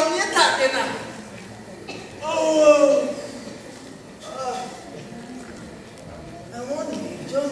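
A young man speaks loudly and with animation, heard in a hall with some echo.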